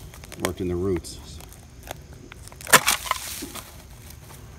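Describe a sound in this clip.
A buried object is pulled loose from the soil with a crunch.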